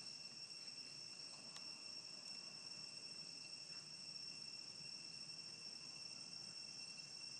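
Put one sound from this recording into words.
A young monkey chews softly on food.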